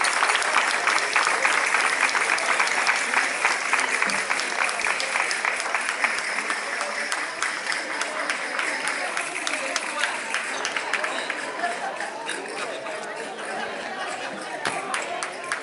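Castanets click rapidly.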